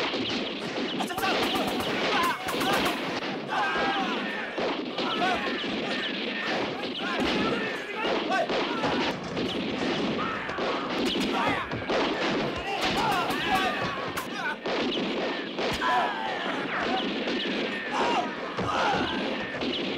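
Guns fire in rapid bursts of sharp bangs.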